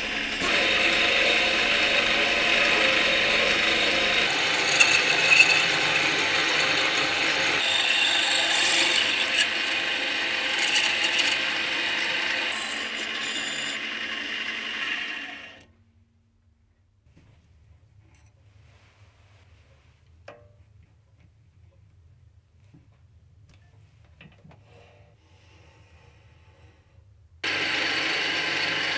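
A lathe spins and a drill bit grinds steadily into metal.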